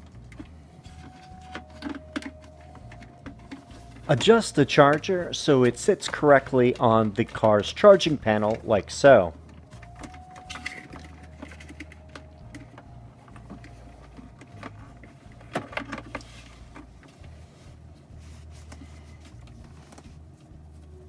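A plastic panel clicks and rattles as it is handled.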